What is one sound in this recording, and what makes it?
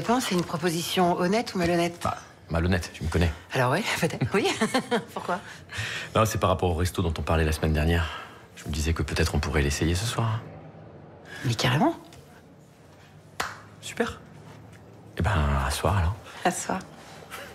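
A woman talks with animation, close by.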